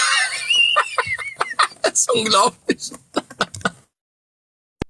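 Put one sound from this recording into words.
A young man laughs loudly and heartily, close to the microphone.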